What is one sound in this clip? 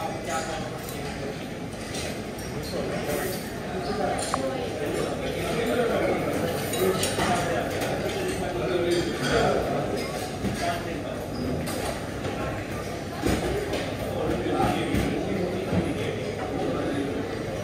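Dishes and utensils clink and clatter.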